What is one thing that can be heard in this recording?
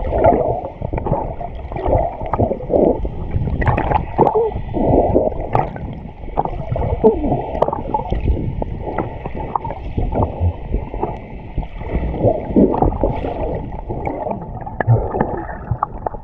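Arms splash and stroke through the water.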